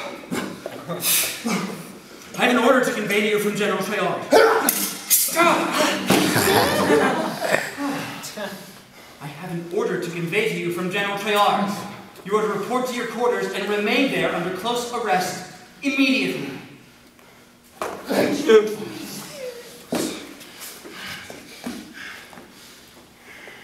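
A young man talks with animation in a large echoing room.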